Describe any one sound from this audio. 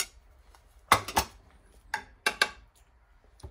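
A metal utensil clinks against a glass baking dish.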